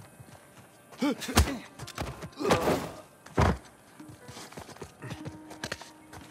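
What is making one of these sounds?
Hands grab and thud against a stone ledge as someone climbs.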